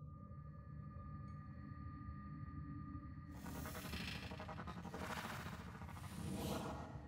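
A machine hums with a steady low drone.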